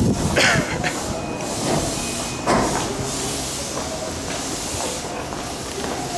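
Footsteps tap as passengers step aboard the train.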